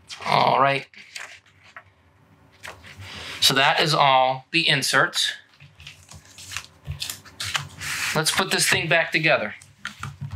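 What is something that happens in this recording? Cardboard packaging rustles and scrapes as it is handled close by.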